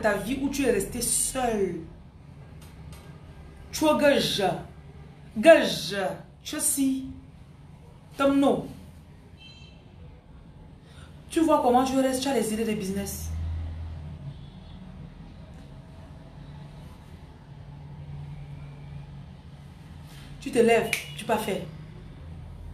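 A woman speaks close to a microphone, in short bursts with pauses.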